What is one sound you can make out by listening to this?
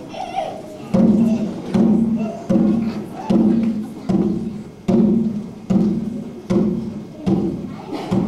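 A large drum booms in a slow, steady beat.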